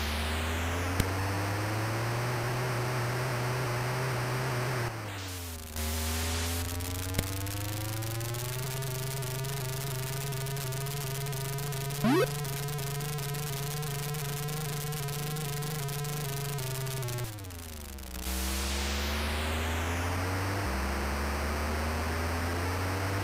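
Electronic tyres screech with a hissing noise.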